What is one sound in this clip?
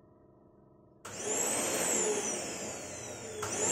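A machine motor starts and whirs loudly.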